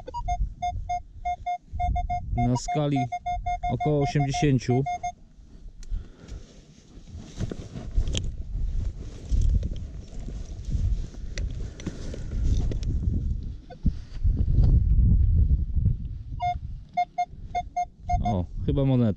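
A metal detector beeps in short repeated tones.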